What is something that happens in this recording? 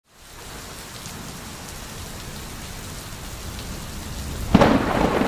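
A stream gurgles and trickles over stones.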